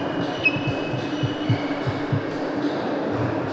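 A table tennis ball bounces a few times on a hard floor.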